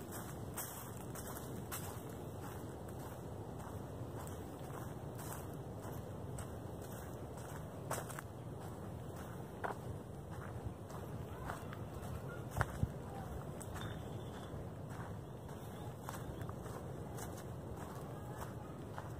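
Wind rustles through low trees outdoors.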